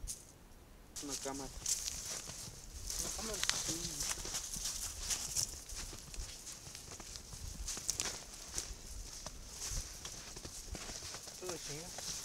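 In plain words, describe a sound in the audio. Men talk quietly a short distance away.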